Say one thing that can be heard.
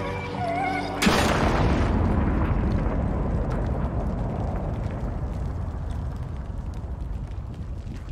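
A deep boom bursts and rumbles, slowly fading.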